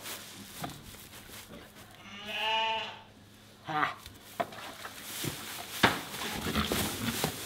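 Hooves and feet shuffle and rustle in straw.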